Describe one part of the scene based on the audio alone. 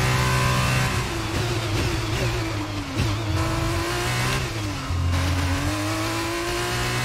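A racing car engine drops in pitch as the car slows for a corner.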